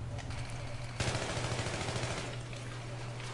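Rapid gunfire rattles in a short burst.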